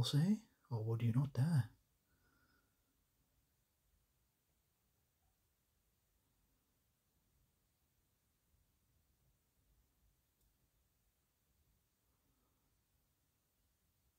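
A brush dabs softly against a small plastic figure.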